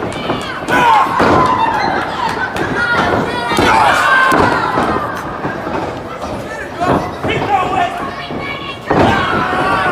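Bodies slam onto a wrestling ring mat with loud thuds.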